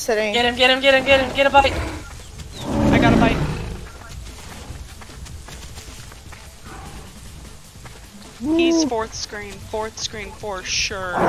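Dinosaur-like creatures screech and chirp loudly.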